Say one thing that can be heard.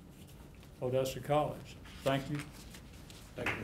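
A man speaks briefly into a microphone in a room.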